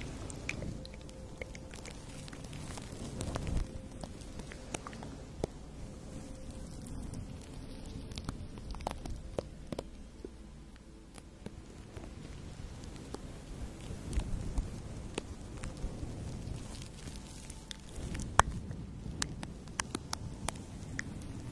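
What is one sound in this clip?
Brush handles tap lightly together.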